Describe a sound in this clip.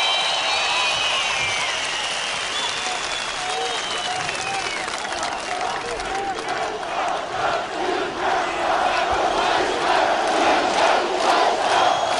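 A man speaks loudly into a microphone, heard through loudspeakers outdoors.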